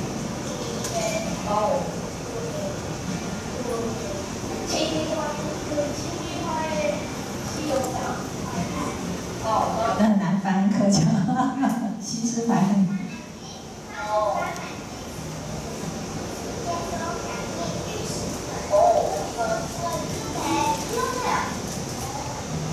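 A young woman speaks calmly into a microphone, heard through loudspeakers in a large room.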